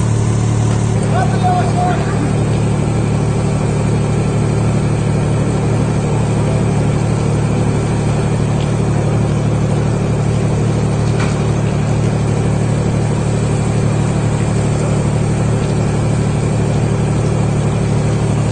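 A crane truck's engine runs with a steady low drone.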